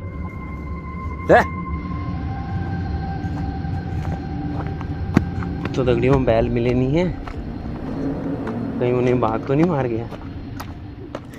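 Footsteps rustle through dry grass and leaf litter.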